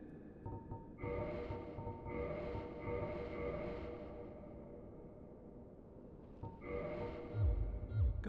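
Soft chimes ring out in short bursts.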